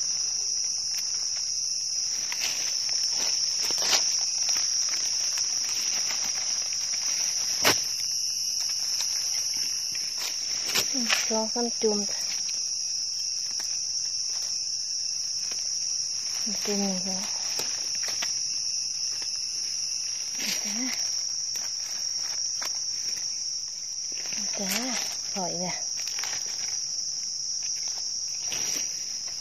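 Dry leaves rustle and crunch close by.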